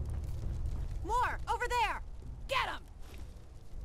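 A woman speaks urgently, close by.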